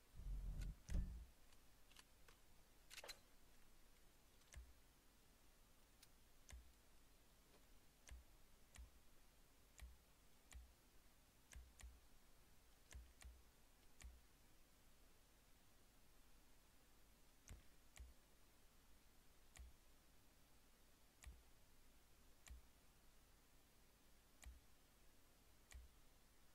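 Soft menu clicks tick every second or so.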